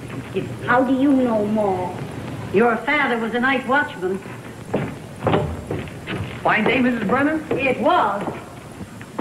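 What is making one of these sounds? A woman speaks warmly through an old, hissy recording.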